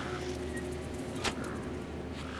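A metal switch clicks.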